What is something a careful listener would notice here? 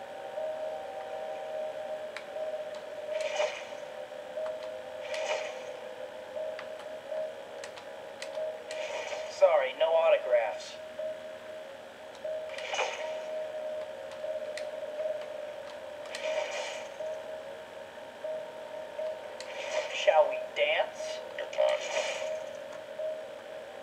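Steady game music plays through a small speaker.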